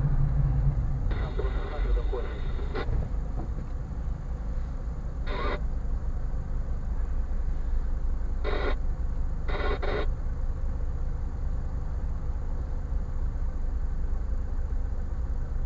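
A car engine idles quietly while the car stands still in traffic.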